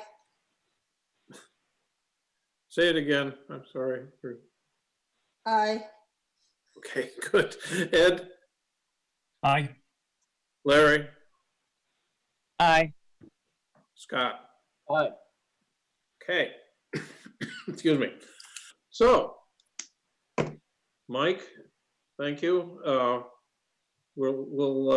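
An elderly man speaks calmly over an online call, with short pauses.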